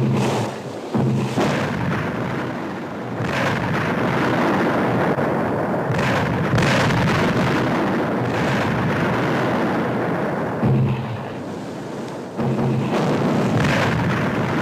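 Shells explode with deep, rumbling blasts.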